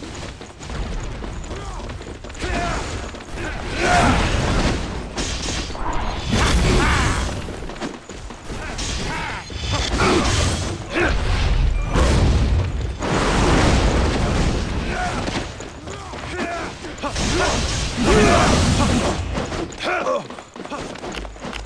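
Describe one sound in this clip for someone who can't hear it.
Blades clash and strike in quick hits.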